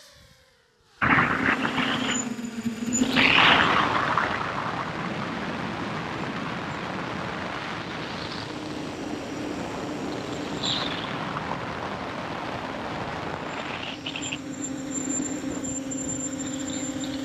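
Wind rushes past in a steady roar.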